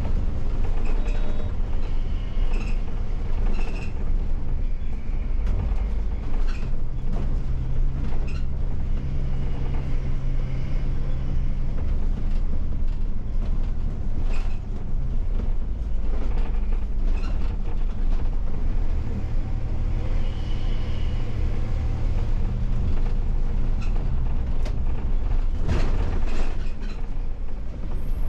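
The bus interior rattles and clicks over the road.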